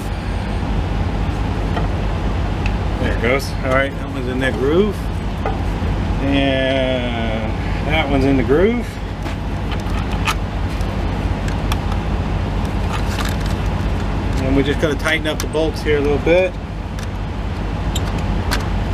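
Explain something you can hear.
Metal clicks and clinks as tools work on an engine.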